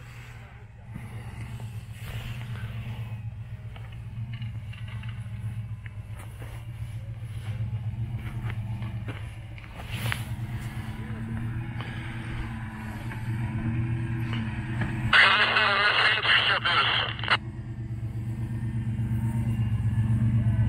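Tyres crunch over dry grass and dirt.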